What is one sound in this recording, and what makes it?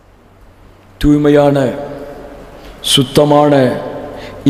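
A young man speaks forcefully into a microphone, his voice echoing in a large hall.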